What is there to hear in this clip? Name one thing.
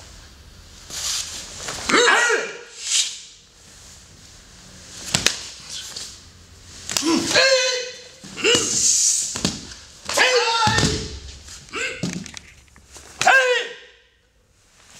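A man shouts sharply several times, echoing in a large hall.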